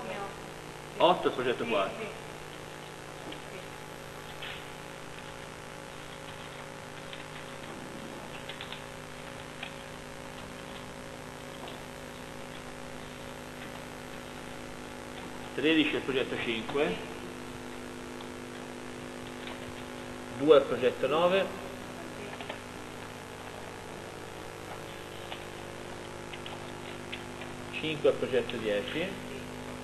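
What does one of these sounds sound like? A man speaks in short bursts, a little distant, in an echoing room.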